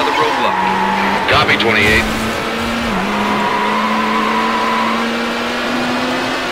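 A racing car engine hums steadily at high speed.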